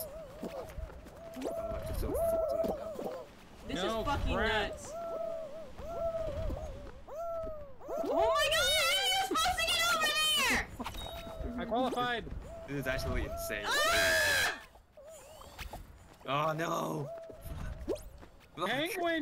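A young woman talks and laughs with animation into a microphone.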